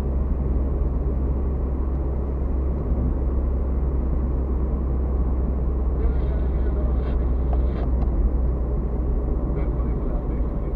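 Tyres rumble over a rough road surface.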